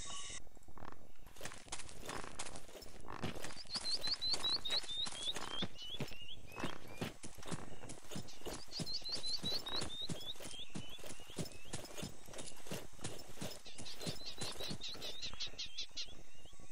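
Footsteps crunch quickly on a gravel path.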